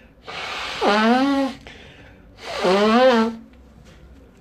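A man blows his nose loudly into a tissue, twice.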